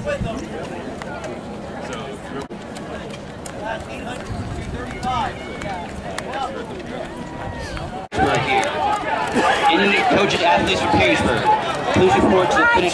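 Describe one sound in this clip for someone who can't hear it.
A crowd of men and women shout and cheer outdoors.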